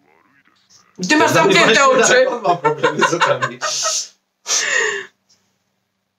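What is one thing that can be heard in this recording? A man laughs heartily nearby.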